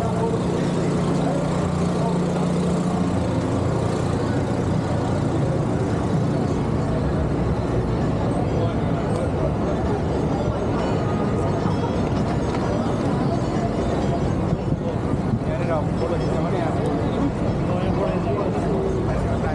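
City traffic hums steadily outdoors.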